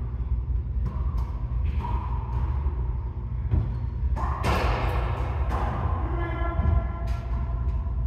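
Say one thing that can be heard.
Men talk and call out casually in a large echoing room.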